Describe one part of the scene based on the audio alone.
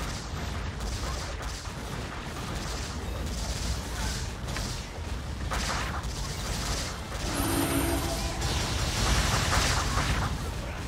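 Game attack effects crash and blast rapidly.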